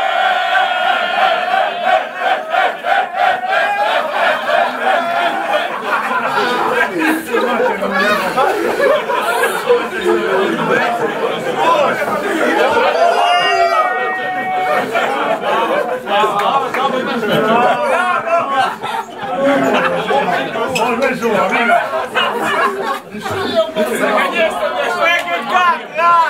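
Young men shout and laugh with excitement close by.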